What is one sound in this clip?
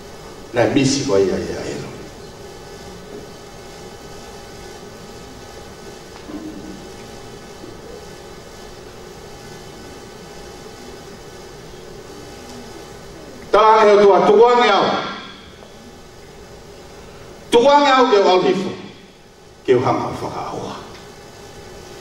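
A man sings loudly through a microphone and loudspeakers, in short bursts with long pauses.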